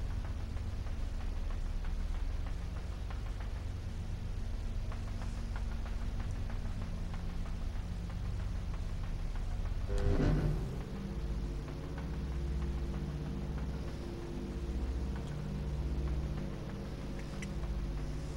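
Soft footsteps patter on a hard floor.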